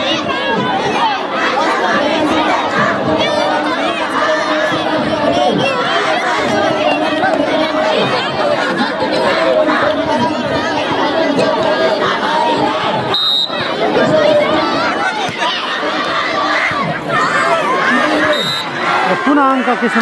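Players shout to each other across the court.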